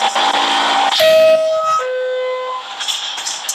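A train's door chime sounds in two tones.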